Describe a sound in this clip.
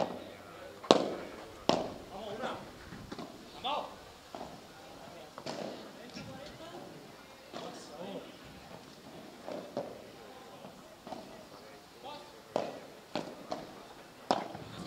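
Padel rackets strike a ball back and forth outdoors.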